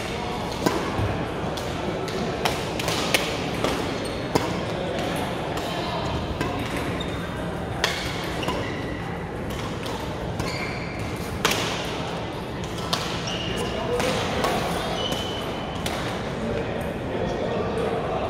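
Shuttlecocks are struck with sharp pops of rackets, echoing in a large hall.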